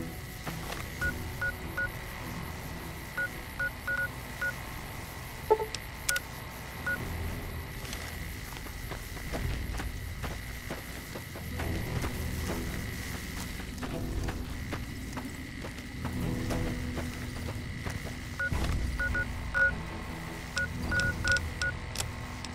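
Short electronic beeps and clicks come from a handheld device's menu.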